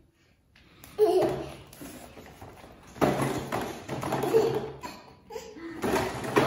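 A toddler babbles and squeals happily close by.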